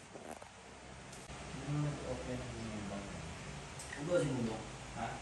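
A man and a woman talk quietly at a distance in a room.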